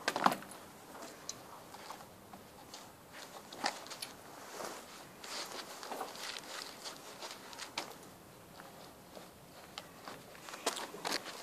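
Shoes scuff and tap on a hard floor close by.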